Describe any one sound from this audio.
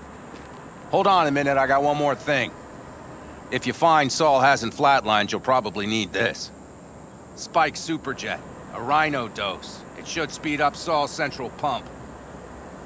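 A man speaks calmly nearby in a low voice.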